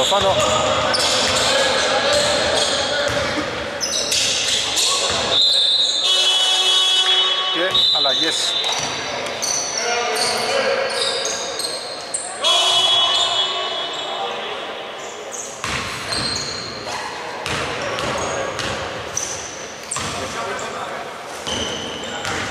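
A basketball bounces on the court with loud thuds.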